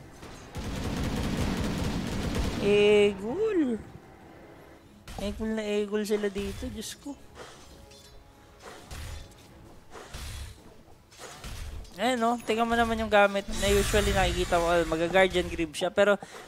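Game spells whoosh and crackle in a fight.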